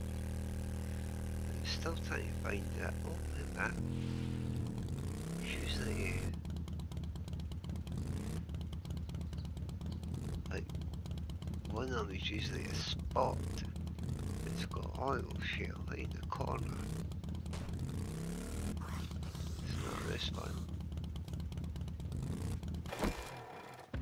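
A motorbike engine hums steadily and revs.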